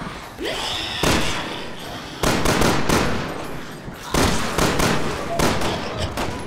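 Pistol shots ring out loudly in an echoing hall.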